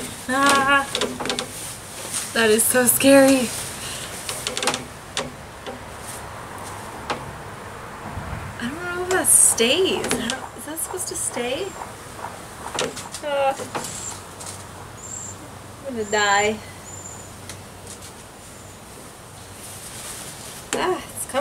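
A young woman talks with animation close by, outdoors.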